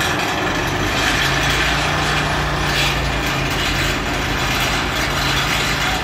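An engine drones with a low steady hum.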